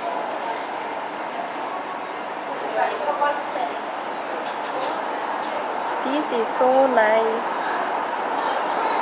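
A crowd of people chatters at a distance, with voices rising at times.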